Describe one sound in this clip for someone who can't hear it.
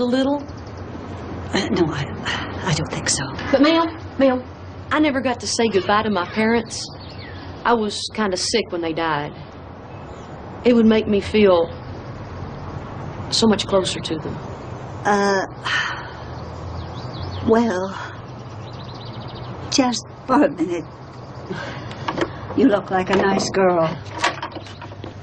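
An elderly woman speaks calmly and quietly, close by.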